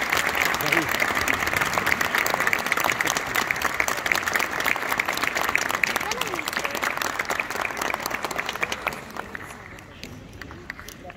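An audience applauds loudly in a large hall, then the clapping thins out.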